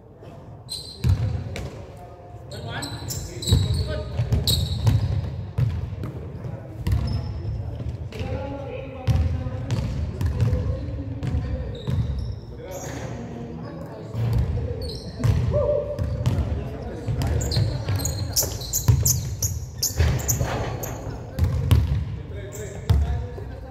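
A basketball bounces on a hard floor, echoing in a large hall.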